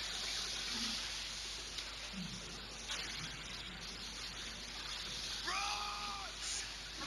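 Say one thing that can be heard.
Stormy waves crash and roar around a small boat.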